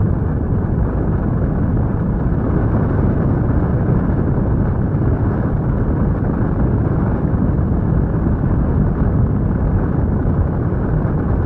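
Strong wind rushes and buffets steadily past a microphone.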